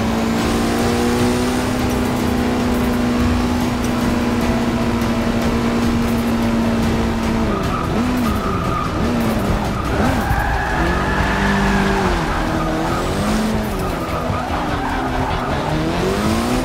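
Tyres squeal as a car slides through corners.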